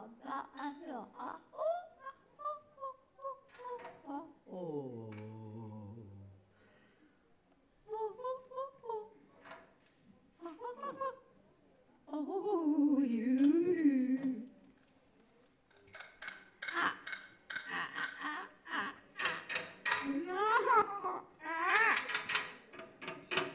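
A woman sings and vocalizes with sliding pitches into a microphone.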